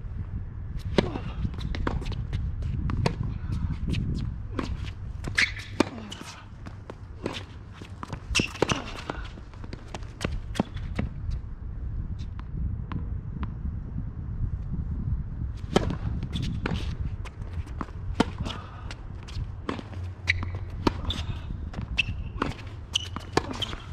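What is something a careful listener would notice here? A tennis ball is struck sharply by rackets in a rally.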